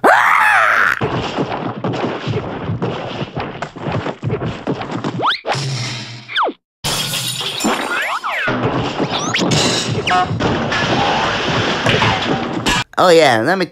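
Cartoon fighting noises clatter and bang in a frantic scuffle.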